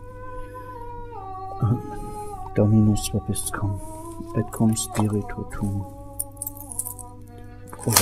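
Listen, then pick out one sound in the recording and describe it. An elderly man chants slowly in a steady voice.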